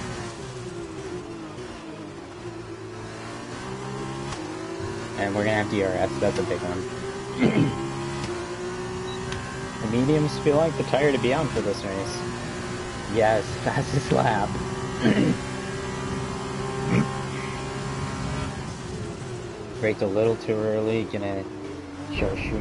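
A racing car engine whines at high revs, rising and falling with gear changes.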